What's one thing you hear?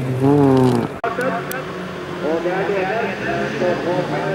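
Several race car engines idle and rev together.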